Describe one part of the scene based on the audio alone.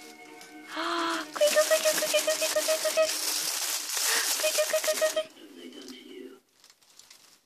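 A baby coos softly close by.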